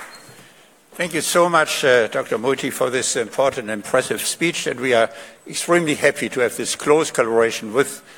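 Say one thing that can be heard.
A man speaks calmly through a microphone and loudspeakers.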